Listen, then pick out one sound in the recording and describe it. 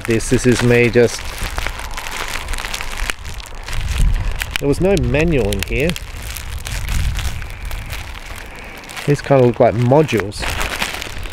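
Plastic packaging crinkles and rustles in hands.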